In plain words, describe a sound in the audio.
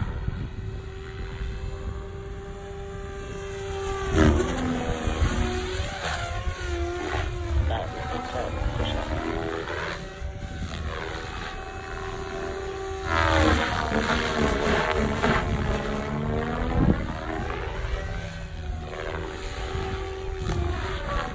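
A model aircraft engine whines overhead, rising and falling in pitch as the craft passes back and forth.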